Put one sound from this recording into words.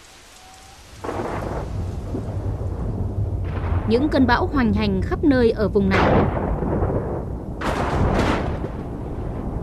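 Thunder rumbles low in the distance.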